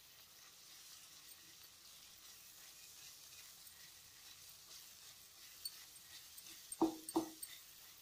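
A spatula scrapes and stirs food in a metal pot.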